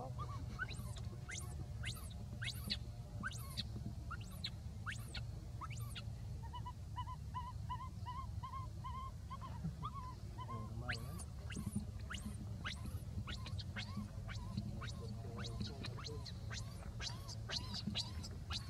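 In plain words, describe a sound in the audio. A baby monkey squeals and whimpers close by.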